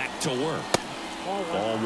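A baseball smacks into a catcher's mitt.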